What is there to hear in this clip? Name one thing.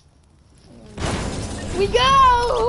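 A bright electronic chime rises and wavers.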